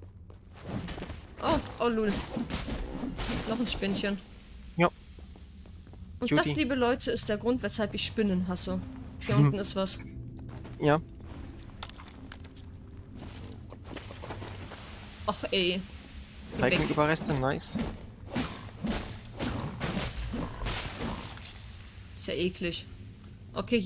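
A young woman talks with animation into a close microphone.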